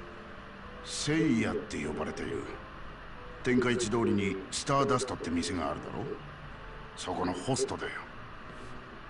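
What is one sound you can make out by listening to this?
A middle-aged man answers calmly and at length.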